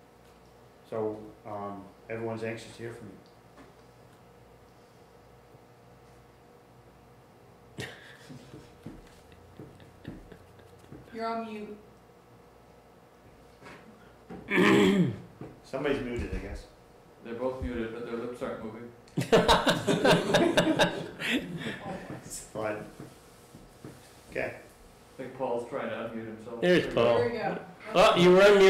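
A man speaks calmly in an echoing room, heard through a microphone.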